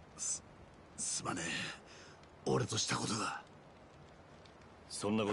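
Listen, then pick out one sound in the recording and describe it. A wounded man speaks weakly and haltingly, close by.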